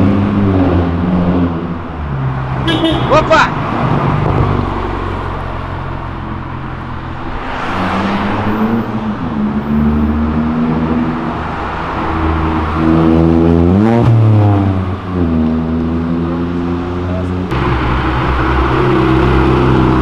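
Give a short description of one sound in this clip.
Car engines rev loudly and rise and fall in pitch.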